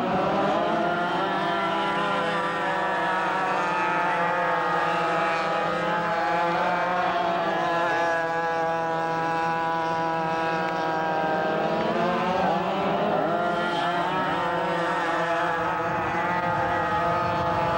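Kart engines rise and fall in pitch as they speed up and slow through the corners.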